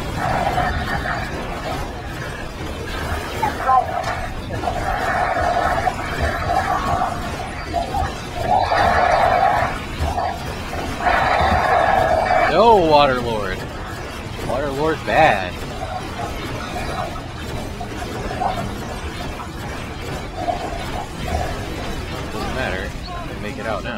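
Magic blasts crackle and whoosh in a video game fight.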